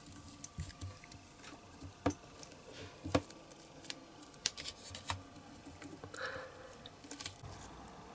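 Fingers rub and press on soft rubber.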